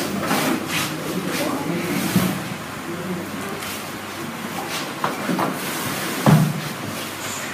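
A man talks calmly nearby.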